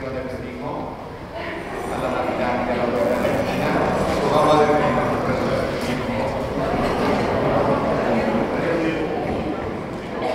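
A large mixed choir sings together in a reverberant space.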